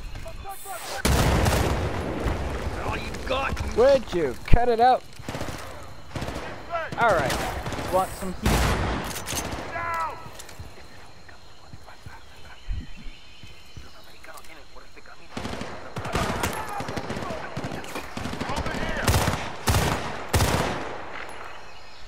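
A rifle fires in loud, sharp bursts close by.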